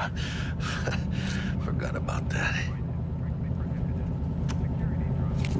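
A car engine idles with a low, steady rumble.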